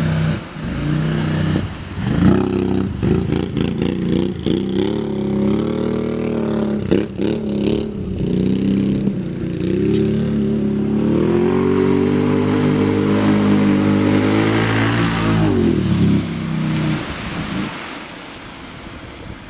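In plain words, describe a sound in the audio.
A quad bike engine roars and revs.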